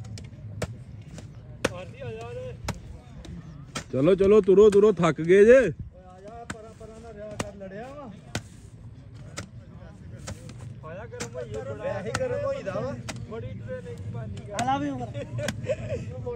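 Young men talk nearby outdoors.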